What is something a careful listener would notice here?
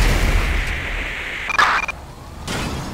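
A helicopter explodes with a loud bang.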